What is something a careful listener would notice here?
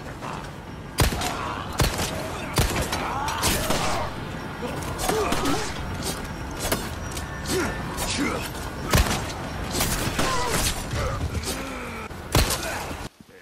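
Gunshots ring out sharply, one at a time.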